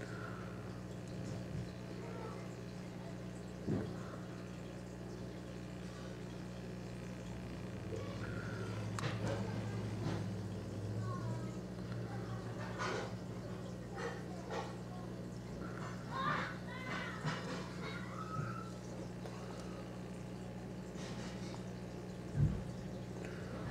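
Water bubbles gently.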